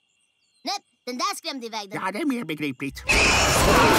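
Small creatures scream in fright.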